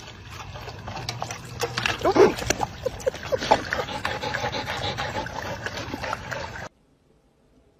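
Two dogs lap water from a bowl.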